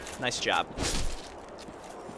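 A sword strikes a creature with a heavy thud.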